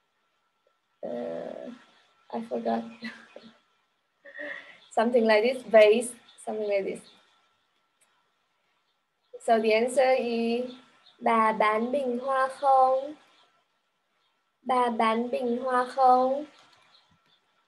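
A young woman speaks clearly and slowly over a microphone, as if teaching.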